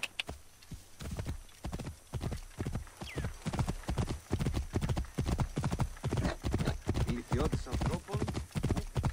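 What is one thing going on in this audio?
Horse hooves gallop steadily on a dirt road.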